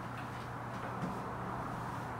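A small wooden object knocks softly on the floor.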